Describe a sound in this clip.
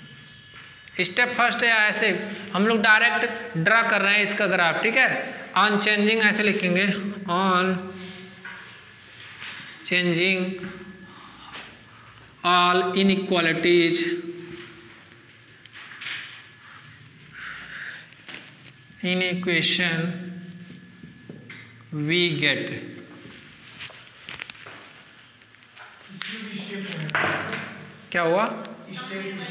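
A young man speaks calmly and explains, close by.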